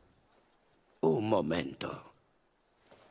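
A young man speaks calmly up close.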